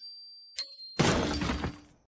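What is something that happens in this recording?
A gunshot bangs loudly.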